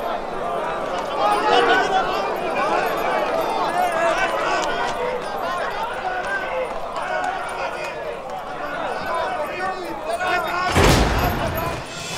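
A crowd of men cheers and shouts excitedly.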